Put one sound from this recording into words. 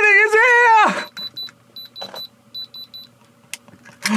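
A diamond tester beeps in quick bursts.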